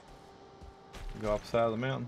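A middle-aged man speaks casually into a close microphone.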